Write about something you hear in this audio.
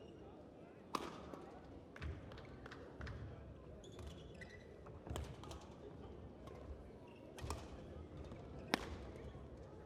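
A badminton racket strikes a shuttlecock with sharp pops in a large echoing hall.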